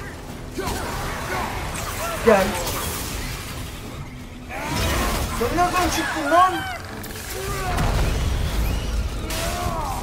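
Fiery blasts and weapon clashes burst out in a fight.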